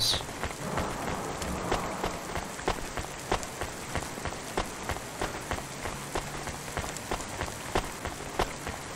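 Footsteps tap steadily on pavement.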